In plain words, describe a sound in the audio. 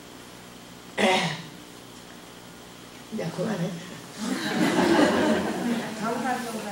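An elderly woman speaks slowly and calmly into a microphone.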